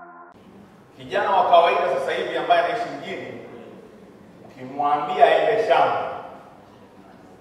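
A man speaks with animation into a microphone, amplified in a hall.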